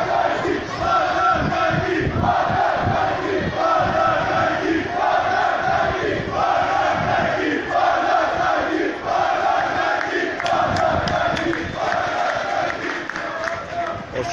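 A large crowd of fans chants loudly in rhythm in an open stadium.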